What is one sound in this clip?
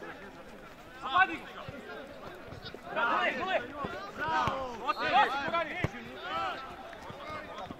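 Men shout and call out outdoors.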